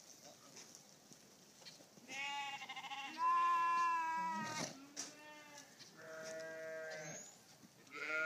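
A donkey rolls and scuffs in dry dirt.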